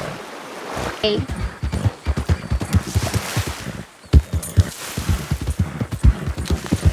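A horse's hooves clop steadily on rocky ground.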